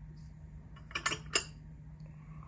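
A ceramic mug clinks against a saucer.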